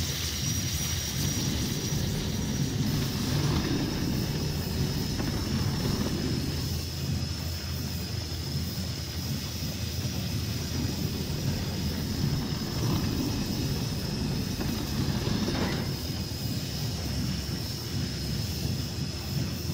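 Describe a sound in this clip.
A heavy metal cart rolls with a low rumble along rails.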